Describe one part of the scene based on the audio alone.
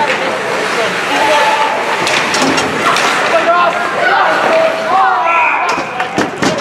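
Young men shout across the rink.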